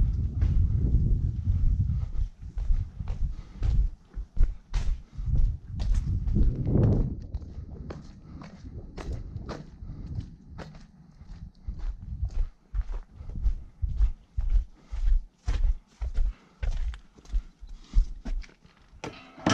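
Footsteps crunch steadily on wet ground.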